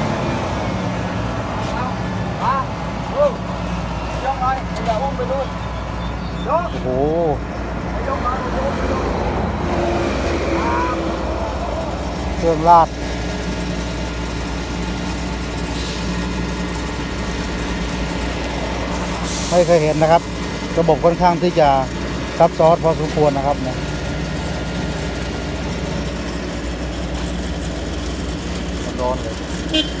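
A paving machine's engine hums steadily nearby.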